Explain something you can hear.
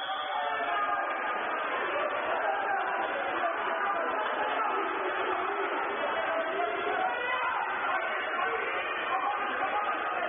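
Water splashes as swimmers thrash about in an echoing indoor pool.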